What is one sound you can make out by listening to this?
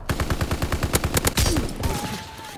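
A rifle fires in a rapid automatic burst.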